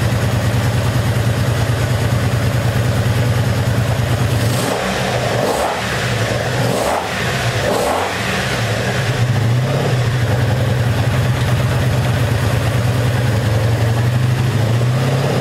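A motorcycle engine idles with a loud, steady rumble.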